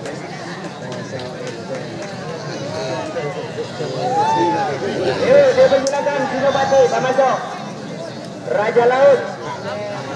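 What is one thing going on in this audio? A crowd of people chatters outdoors in the distance.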